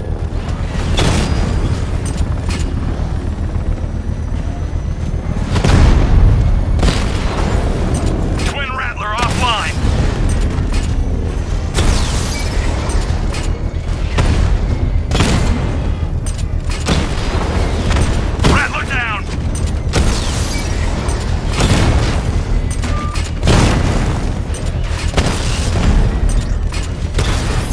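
Cannons fire in rapid bursts.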